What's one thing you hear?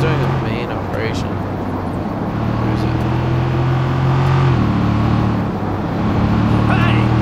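A car engine hums steadily, shifting gear as it drives.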